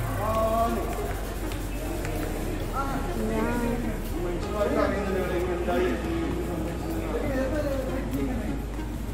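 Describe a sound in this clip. A woman talks casually close by.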